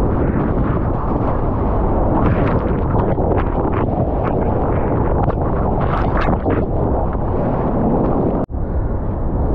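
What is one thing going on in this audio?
A breaking wave crashes into foaming whitewater close by.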